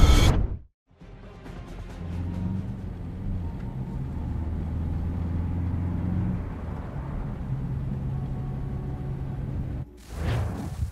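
A van's engine drones, heard from inside the cabin.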